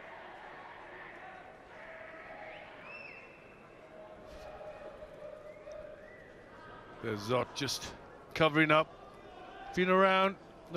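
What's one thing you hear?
A crowd murmurs steadily in a large echoing hall.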